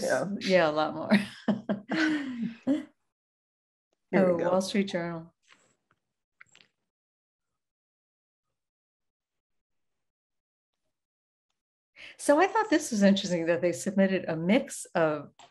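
A woman speaks calmly over an online call, pausing now and then.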